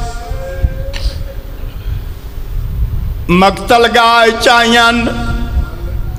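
A man chants in a long, drawn-out voice over a loudspeaker in a large echoing hall.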